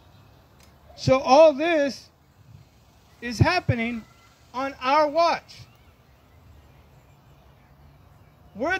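A man speaks slowly and deliberately into a microphone outdoors, with pauses between phrases.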